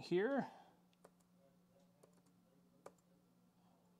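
Laptop keys click softly.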